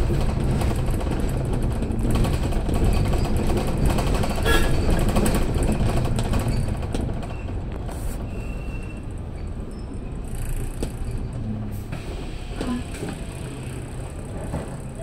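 City traffic hums all around at night.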